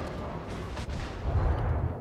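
Shells crash into the water nearby.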